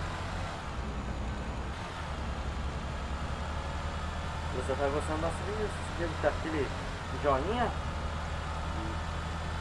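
A bus engine hums low and steady as it drives.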